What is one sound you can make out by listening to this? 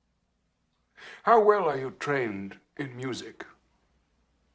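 An elderly man asks a question calmly in a low, husky voice.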